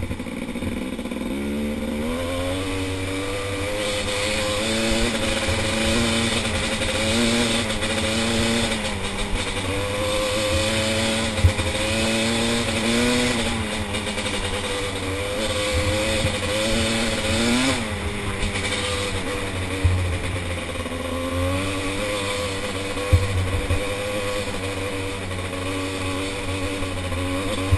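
Tyres rumble over a bumpy dirt track.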